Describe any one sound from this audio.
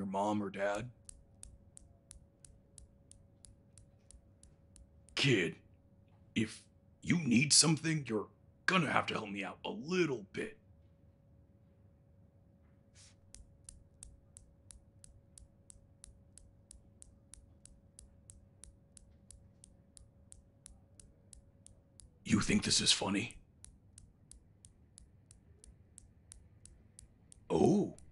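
Metal balls on a desk toy click steadily and quickly.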